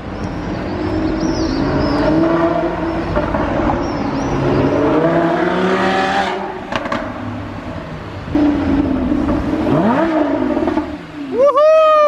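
A sports car engine roars and revs loudly as the car drives past.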